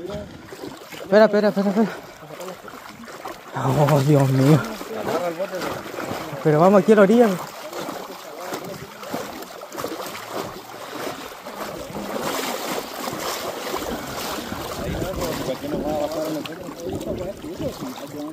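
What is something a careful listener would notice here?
River water ripples and laps against the bank.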